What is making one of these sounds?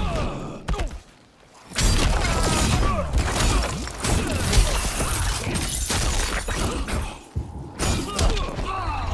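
Heavy punches and impacts land in a video game fight.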